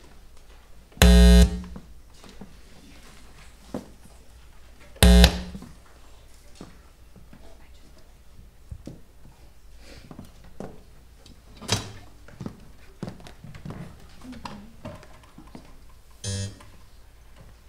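Orchestra instruments sound short, loud tuning notes in an echoing hall.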